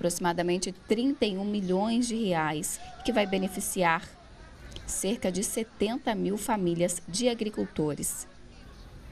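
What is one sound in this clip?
A man announces with animation through a loudspeaker.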